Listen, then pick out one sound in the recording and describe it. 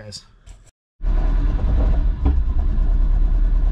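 A car engine idles with a steady low rumble close by.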